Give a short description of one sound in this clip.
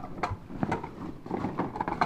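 A hand rummages through a bag, with things rustling and knocking together.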